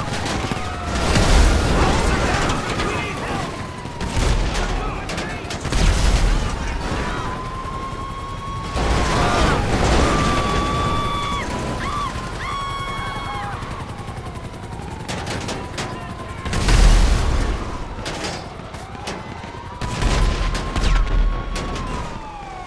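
A tank cannon fires with deep, heavy booms.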